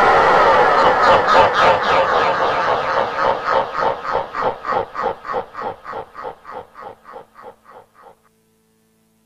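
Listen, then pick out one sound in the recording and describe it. A horse gallops, its hoofbeats fading away.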